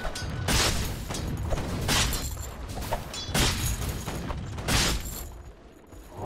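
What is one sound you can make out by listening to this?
Weapons clash and magic bursts crackle in quick, loud bursts during a fight.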